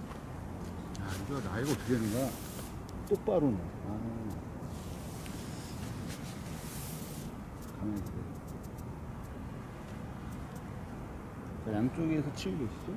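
A man talks casually nearby.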